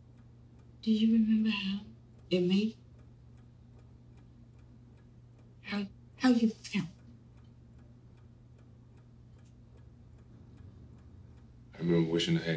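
A woman speaks quietly and earnestly nearby.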